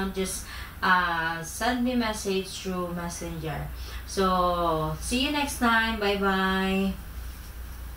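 A woman speaks with animation to a room, with a slight echo.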